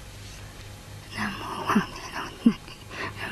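A woman murmurs a quiet prayer.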